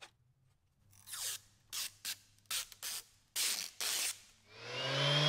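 A knife scrapes and scores a plastic sheet.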